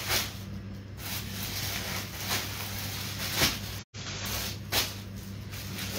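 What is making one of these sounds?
Plastic packets rustle as they are handled.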